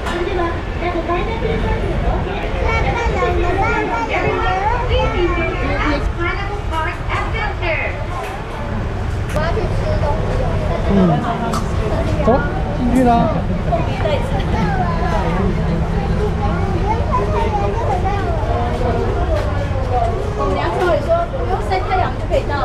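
A crowd of people chatter nearby.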